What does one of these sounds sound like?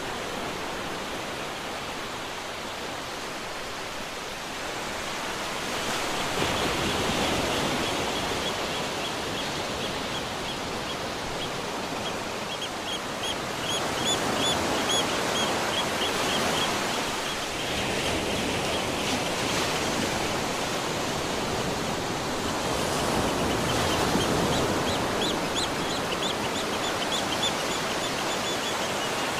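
Waves wash steadily onto a beach nearby.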